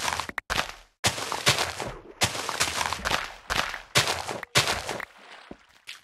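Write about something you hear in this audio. Crops rustle and snap as they are picked.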